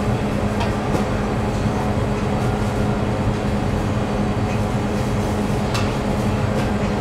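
A tool taps lightly against dough and a tray.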